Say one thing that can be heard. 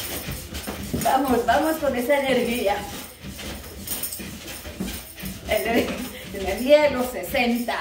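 A woman sings close by.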